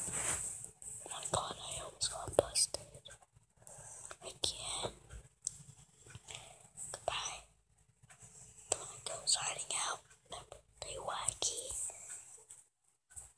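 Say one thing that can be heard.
A young boy speaks softly, very close to the microphone.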